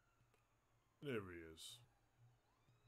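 A man cries out suddenly into a close microphone.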